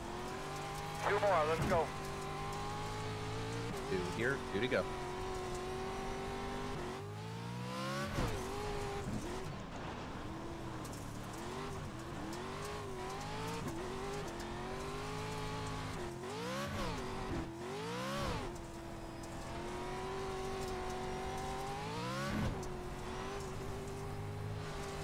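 A race car engine roars and revs up and down throughout.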